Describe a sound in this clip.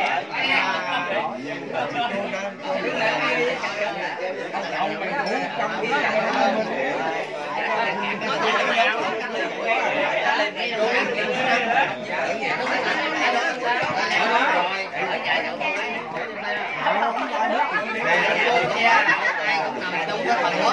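A crowd of men and women chatter and talk over one another nearby.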